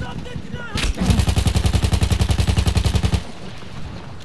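A machine gun fires a rapid, steady burst.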